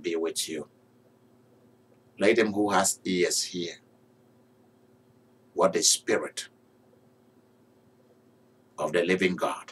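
A man speaks calmly in bursts with pauses, close to a microphone.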